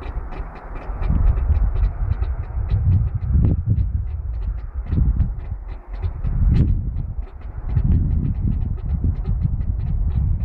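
A Class 66 two-stroke diesel locomotive rumbles past close by.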